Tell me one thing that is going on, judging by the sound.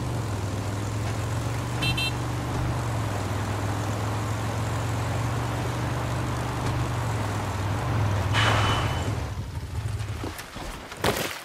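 A motorcycle engine hums steadily as it rides, then stops.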